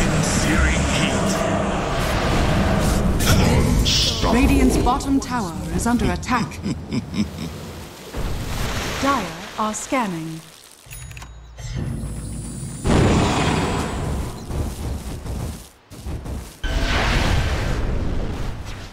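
Fire spells burst and crackle amid clashing battle effects.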